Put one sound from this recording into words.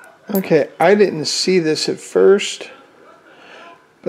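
Metal coins clink softly against each other.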